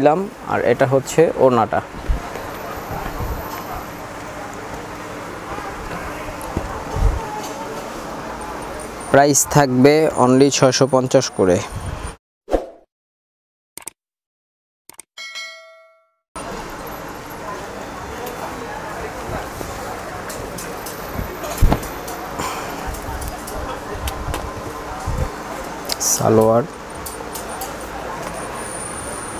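A young man talks steadily and with animation, close by.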